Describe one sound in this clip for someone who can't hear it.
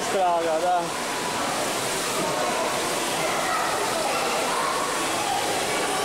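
Swimmers splash and chatter in a large echoing hall.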